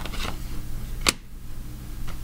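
A card slaps down onto a wooden table.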